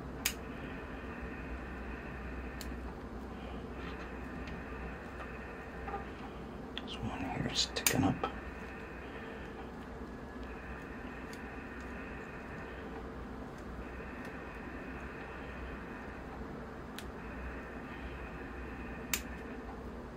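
Scissors snip through small roots with sharp clicks.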